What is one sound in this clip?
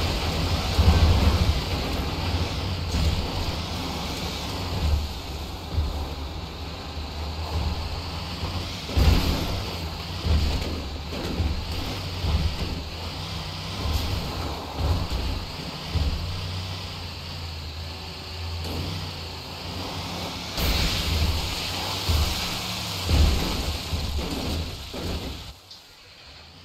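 A truck's tyres crunch and bump over rocky dirt.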